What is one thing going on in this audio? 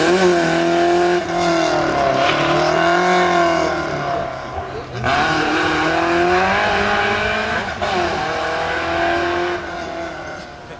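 A rally car engine revs hard, rising and falling with each gear change as the car speeds away and fades into the distance.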